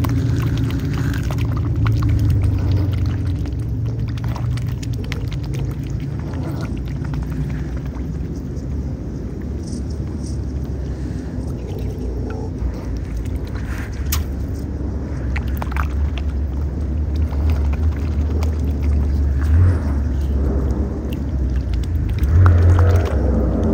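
A swan dabbles its beak in shallow water with soft splashes.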